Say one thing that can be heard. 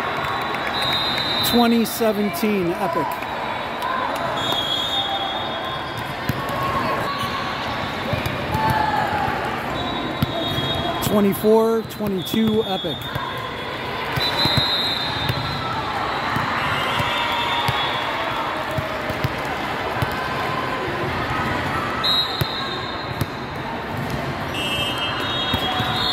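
A large echoing hall is filled with the chatter of many people.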